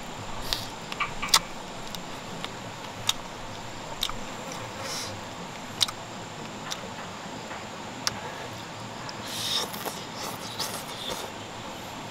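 A young man chews and crunches on leaves.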